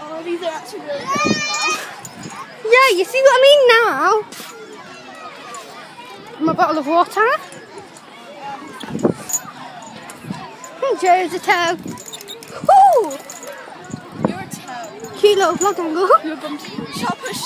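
A young girl talks and laughs with animation close by.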